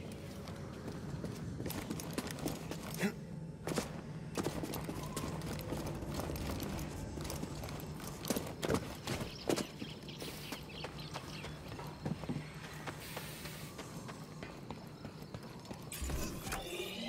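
Quick footsteps run over stone and grass.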